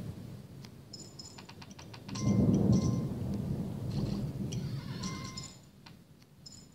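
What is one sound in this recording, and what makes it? Coins clink as they drop.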